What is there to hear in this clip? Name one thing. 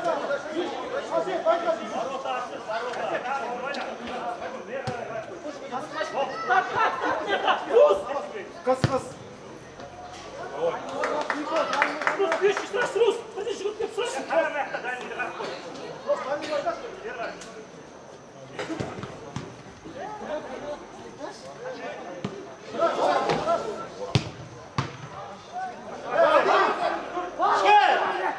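Players shout to each other across an outdoor pitch.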